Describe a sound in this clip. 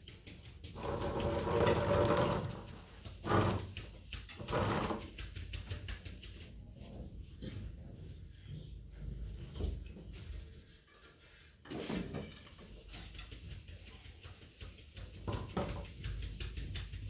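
Metal dishes scrape and rattle on the floor.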